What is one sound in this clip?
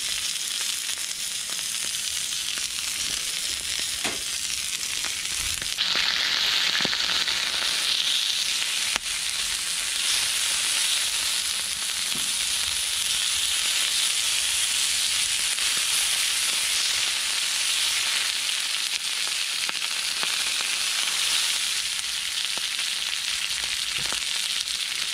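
Meat sizzles and spits loudly on a hot griddle.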